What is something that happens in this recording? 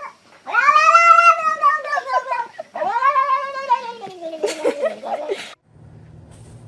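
A cat yowls loudly in long, wavering cries.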